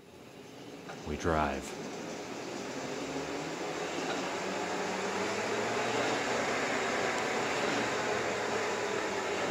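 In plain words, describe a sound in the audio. An engine cranks, starts and runs with a loud steady roar.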